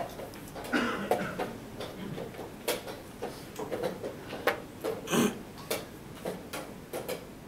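Men murmur quietly in the background of a large room.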